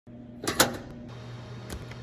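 A switch clicks as it is turned.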